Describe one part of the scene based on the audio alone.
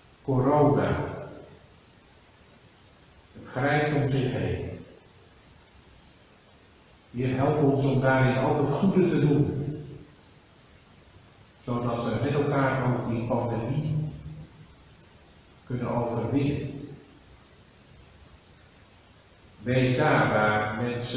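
An older man speaks slowly and solemnly into a microphone, with pauses between phrases, in a room with a slight echo.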